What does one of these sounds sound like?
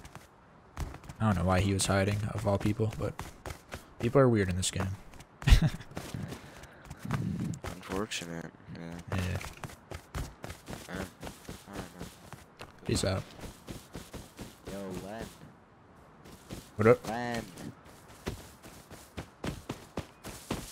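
Footsteps patter steadily over hard ground and dry grass.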